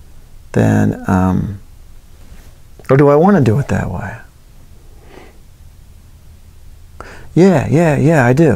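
A man talks with animation, close by.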